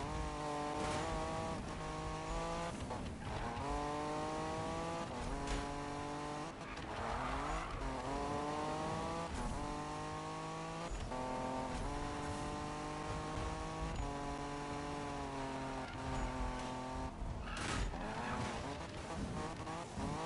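A racing car engine roars and revs through its gears.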